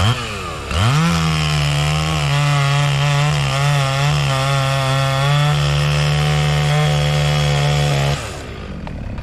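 A chainsaw engine revs up and runs loudly at high speed, then cuts out.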